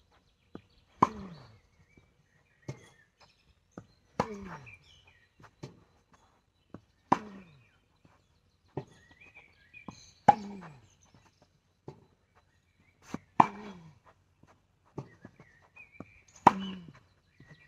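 A tennis racket strikes a ball with a sharp pop every few seconds.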